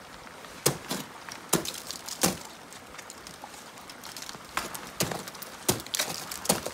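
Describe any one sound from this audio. Ice axes strike and bite into hard ice in sharp thuds.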